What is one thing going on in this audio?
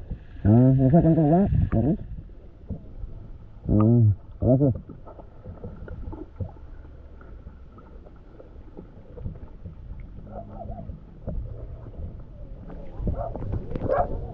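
Muffled water rumbles and gurgles all around, heard from underwater.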